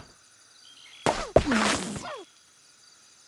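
Balloons pop and objects clatter as a bird strikes them.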